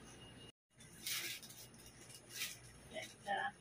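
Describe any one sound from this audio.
Paper and plastic wrapping rustle and crinkle as it is handled.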